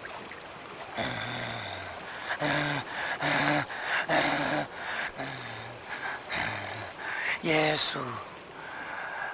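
A man shouts loudly and wildly.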